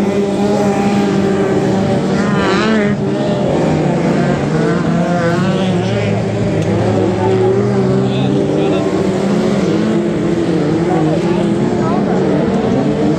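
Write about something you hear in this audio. Race car engines roar and whine around a dirt track.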